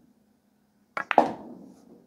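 A cue stick strikes a ball with a sharp click.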